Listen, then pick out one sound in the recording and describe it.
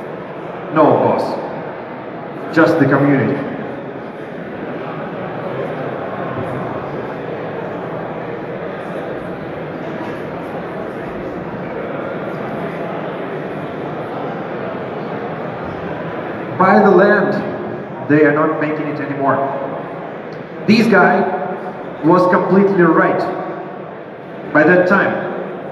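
A young man speaks with animation through a microphone and loudspeakers in a large echoing hall.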